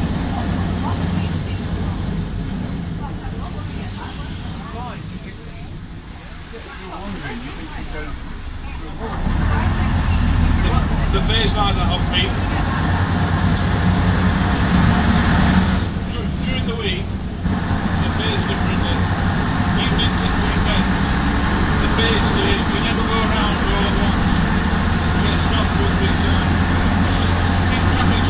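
A bus engine rumbles steadily from inside the bus, growing louder as it pulls away.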